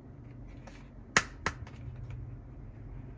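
Fingers tap and knock on a hollow plastic toy lid.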